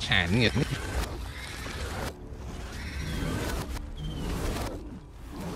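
A large beast snarls and screeches.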